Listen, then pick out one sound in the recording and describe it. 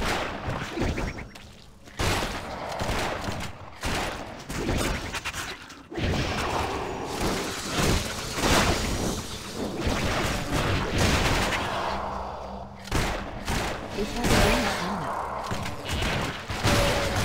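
Weapon strikes and magic blasts hit enemies in quick, busy bursts.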